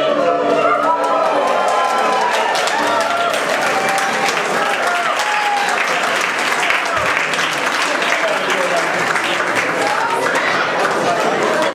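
A large crowd claps in a big echoing hall.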